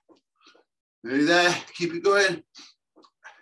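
A man speaks loudly and with effort, close to the microphone.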